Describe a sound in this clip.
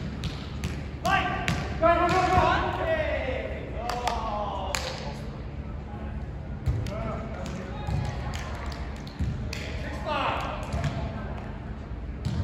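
Young men shout and call out loudly in a large echoing hall.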